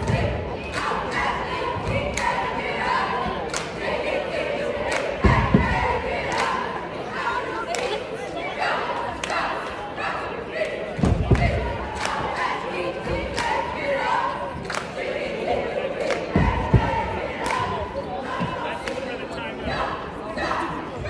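Basketballs bounce on a wooden floor.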